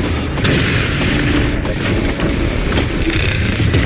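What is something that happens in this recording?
A weapon fires in sharp bursts.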